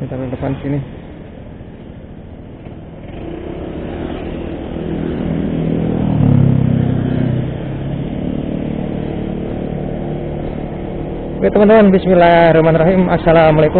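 A motorbike engine hums steadily while riding, rising a little as it speeds up.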